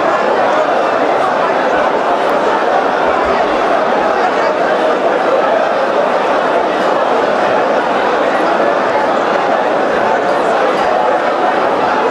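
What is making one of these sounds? A choir of men sings loudly through microphones in a reverberant hall.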